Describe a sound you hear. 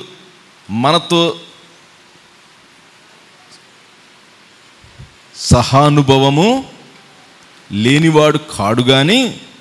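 A man speaks slowly and solemnly into a microphone, in short phrases with pauses.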